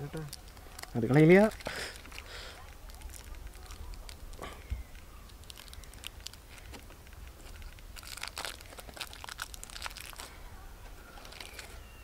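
Foil wrapping crinkles and rustles as a chocolate bar is unwrapped.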